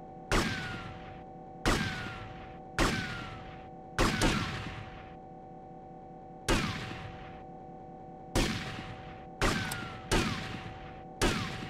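Gunshots ring out one at a time, echoing loudly.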